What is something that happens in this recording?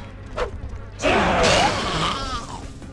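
A wet burst of blood splatters loudly.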